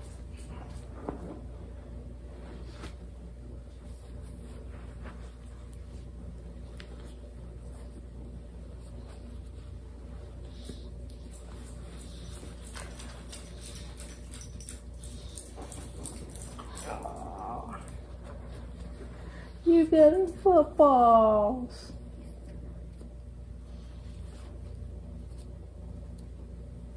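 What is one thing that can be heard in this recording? Soft baby clothes rustle as they are handled.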